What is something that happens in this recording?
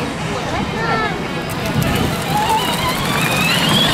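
A small electric toy car whirs as a child drives off.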